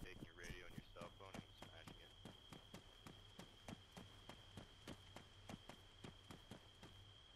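Footsteps crunch steadily on grass and dirt.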